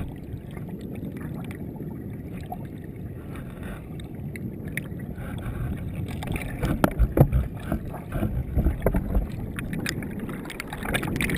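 Water bubbles and churns, heard muffled from underwater.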